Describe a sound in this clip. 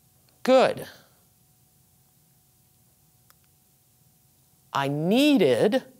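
A woman speaks slowly and clearly, pronouncing words.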